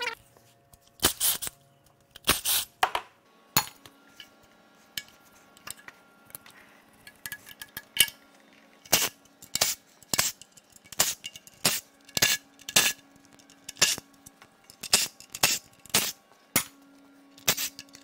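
A cordless drill whirs in short bursts.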